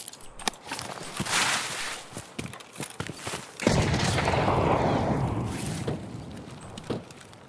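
Branches and leaves rustle as someone pushes through undergrowth.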